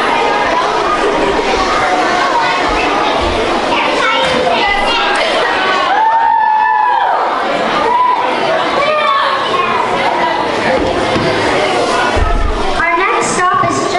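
A young girl speaks aloud on a stage.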